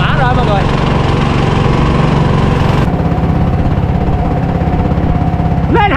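A boat's motor drones with a fast, steady chug.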